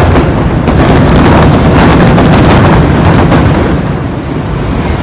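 Debris crashes and crackles as it falls.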